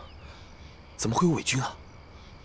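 A young man asks a question in a worried voice.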